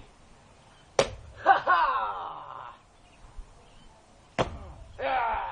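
A sledgehammer smashes into a pumpkin with a heavy crunch.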